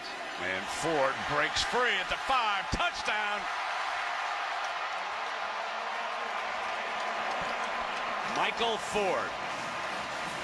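A large stadium crowd roars and cheers.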